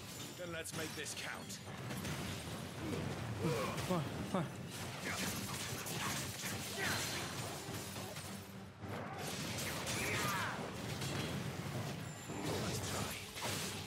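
Swords clash and slash in quick strikes.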